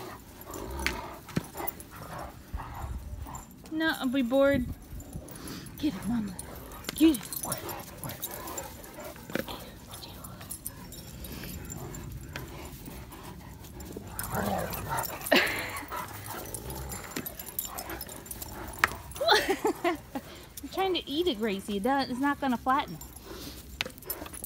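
A rubber ball thuds as a dog noses it.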